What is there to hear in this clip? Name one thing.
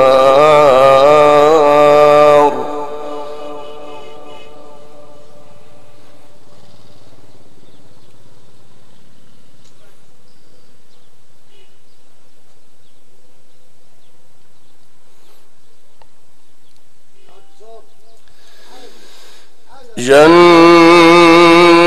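A man chants in a long, wavering voice through a loudspeaker.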